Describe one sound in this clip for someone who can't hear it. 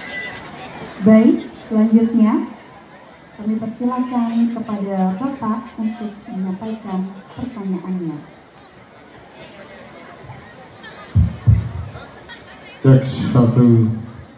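A man speaks with animation through a microphone over loudspeakers outdoors.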